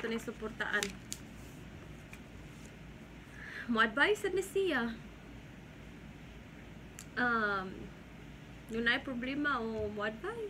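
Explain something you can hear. A young woman talks close by, calmly and with animation.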